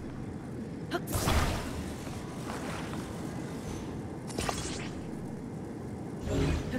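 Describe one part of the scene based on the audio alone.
A magical beam hums.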